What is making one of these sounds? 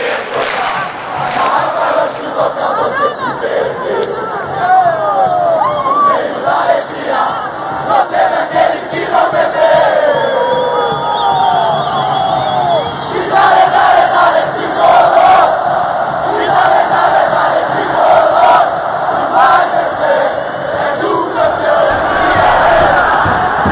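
A large stadium crowd sings and chants loudly together.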